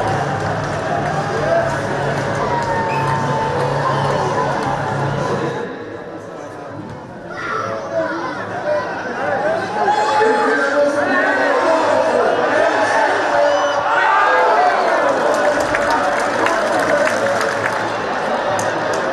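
A large crowd cheers and chants in an open stadium.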